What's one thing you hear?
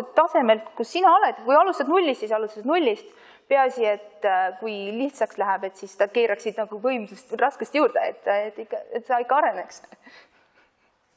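An older woman speaks calmly into a microphone in an echoing hall.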